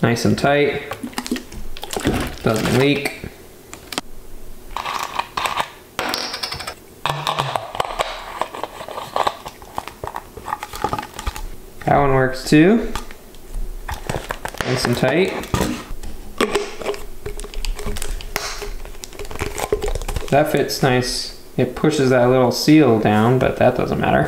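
Plastic bottles crinkle and crackle as hands handle them.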